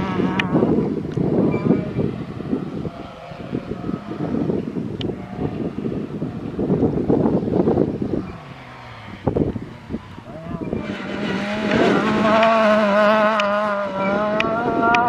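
A rally car engine roars and revs hard close by.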